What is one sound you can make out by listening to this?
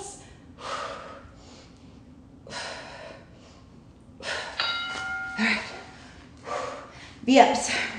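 A woman breathes hard with effort.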